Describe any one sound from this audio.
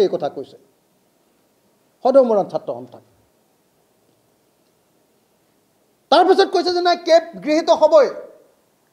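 A young man speaks with animation into microphones, in short bursts with pauses.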